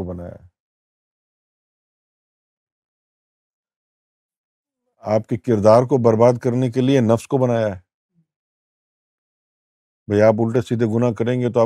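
A middle-aged man speaks calmly and clearly into a close microphone, pausing between phrases.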